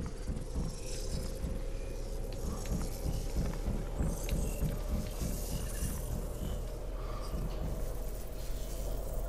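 Footsteps patter softly on hard ground.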